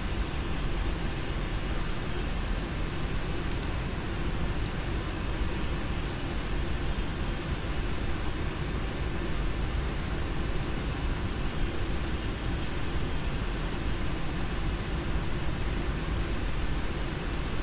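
A jet airliner's engines rumble steadily while it taxis, heard from inside the cockpit.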